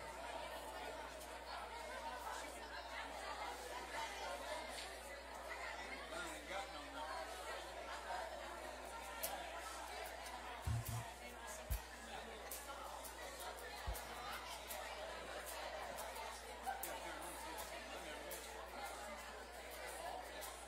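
A crowd of men and women chatter and murmur throughout a large, echoing hall.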